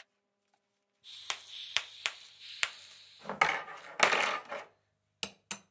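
A welding arc hisses and crackles.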